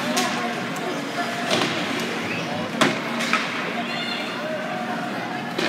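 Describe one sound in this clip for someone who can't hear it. A crowd murmurs and chatters in a large echoing rink.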